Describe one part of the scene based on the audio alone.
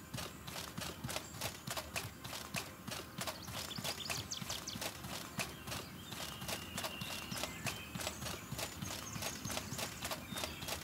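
Quick footsteps clatter on a hard floor.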